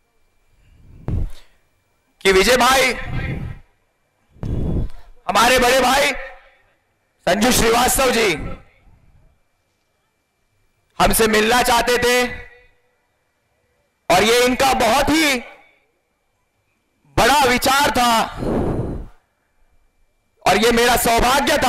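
A man gives a speech loudly and forcefully into a microphone, heard through loudspeakers with pauses between phrases.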